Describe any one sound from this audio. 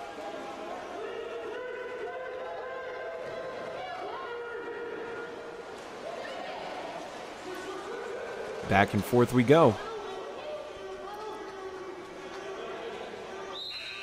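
Swimmers splash water in an echoing indoor pool.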